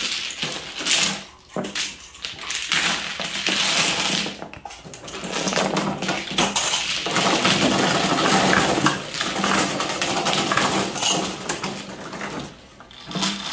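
Plastic tiles clatter and rattle as hands shuffle them across a felt table.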